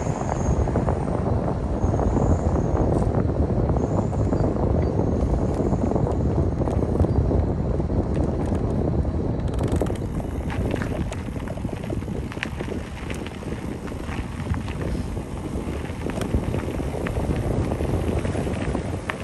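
A vehicle's tyres rumble steadily over a rough road, growing a little quieter partway through.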